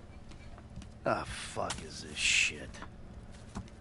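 A man mutters in a puzzled voice, close by.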